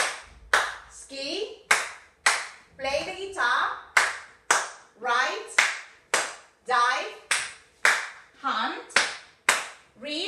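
A woman chants loudly and rhythmically nearby.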